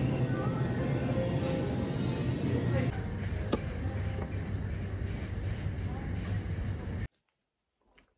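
A busy store hums with steady background noise.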